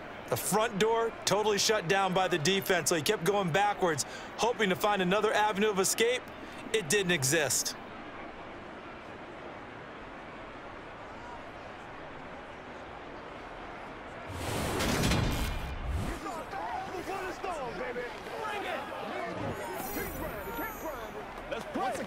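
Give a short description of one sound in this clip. A large stadium crowd cheers and roars in the distance.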